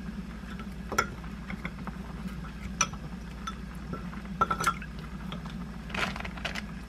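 Frozen shrimp clink and splash in water in a glass cup.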